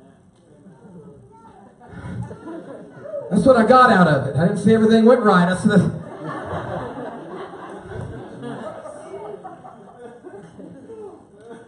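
A man speaks into a microphone with feeling, heard over loudspeakers in a large echoing hall.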